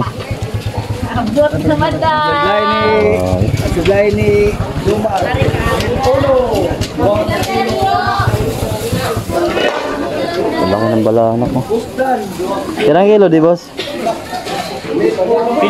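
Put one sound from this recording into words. People talk and call out nearby in a busy outdoor crowd.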